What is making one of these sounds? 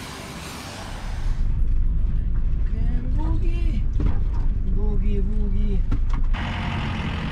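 A vehicle's engine rumbles steadily from inside the cab.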